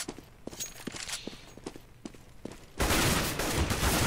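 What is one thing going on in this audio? A rifle fires several rapid shots.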